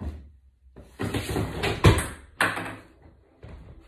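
Wooden blocks clatter as they topple in a row.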